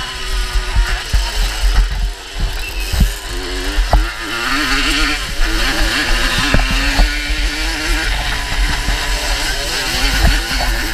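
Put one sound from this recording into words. A dirt bike engine revs and buzzes up close.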